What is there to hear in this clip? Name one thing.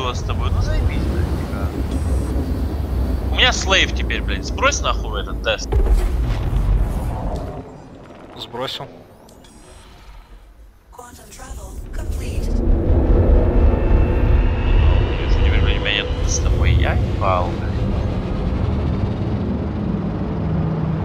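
A spacecraft engine rumbles deeply, fading briefly and then swelling again.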